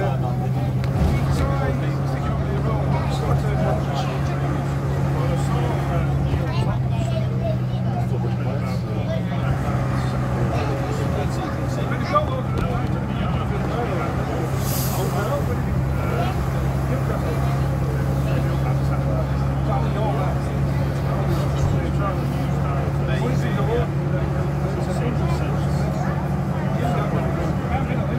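A bus engine drones steadily with a low hum.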